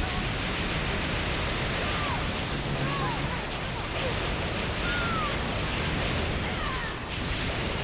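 Blades slash and whoosh through the air.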